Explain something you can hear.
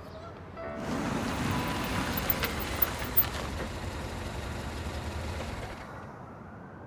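A car engine rumbles nearby.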